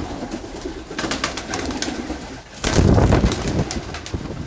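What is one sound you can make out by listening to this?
Pigeon wings flap and clatter.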